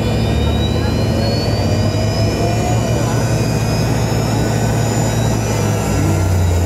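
A jet engine hums and whines steadily as an airliner taxis.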